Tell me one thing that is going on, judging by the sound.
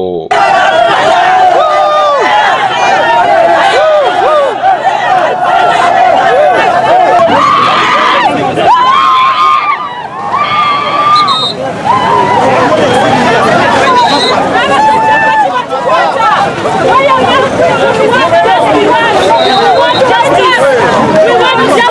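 A crowd of women sings and chants loudly outdoors.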